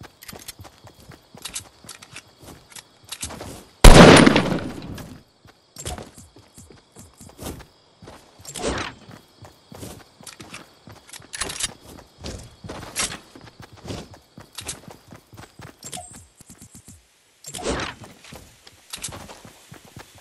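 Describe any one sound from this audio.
Footsteps patter quickly over ground.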